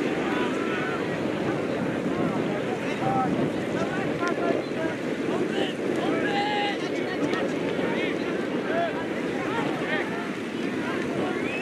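Young men shout to each other in the distance.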